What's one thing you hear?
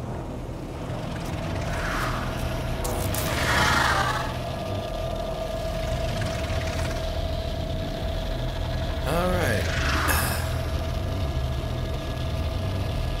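A steady electronic hum drones.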